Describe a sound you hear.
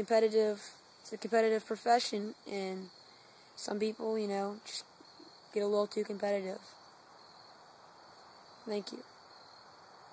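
A teenage boy speaks calmly and close by.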